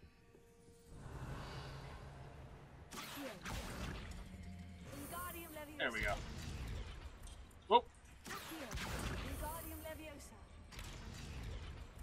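A magic spell whooshes and crackles.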